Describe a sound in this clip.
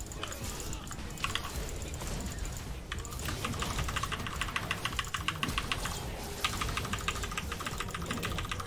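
Magic blasts and blows clash in a fast game fight.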